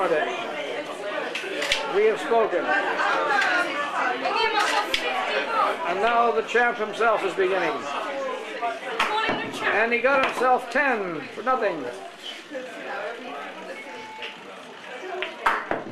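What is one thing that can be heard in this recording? Men talk and chat nearby.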